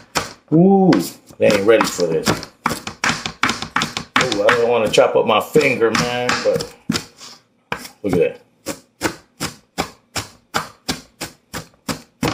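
A knife chops rapidly on a cutting board.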